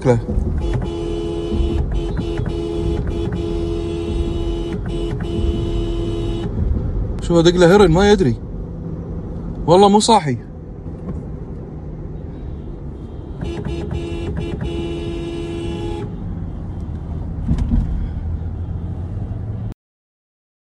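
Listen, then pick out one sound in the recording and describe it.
A car engine roars at speed close by.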